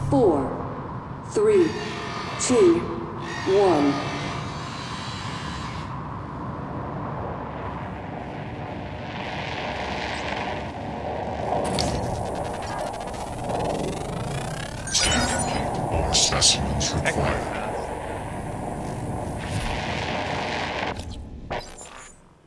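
Electronic game sound effects whoosh and chime.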